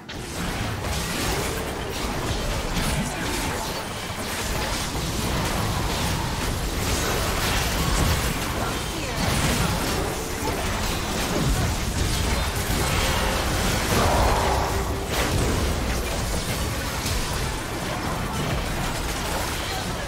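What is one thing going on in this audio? Game spell effects and attacks crackle and burst in quick succession.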